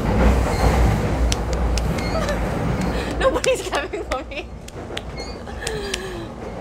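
A train rumbles along the track.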